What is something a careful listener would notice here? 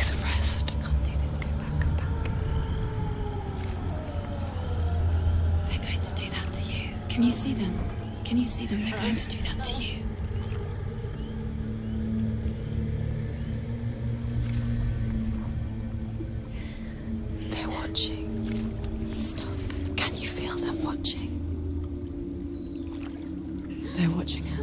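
A paddle splashes and dips in water as a small boat glides along.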